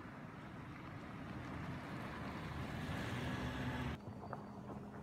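A car drives past on pavement.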